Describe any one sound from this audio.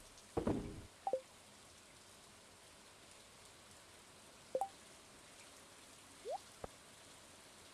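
Short electronic menu blips sound a few times.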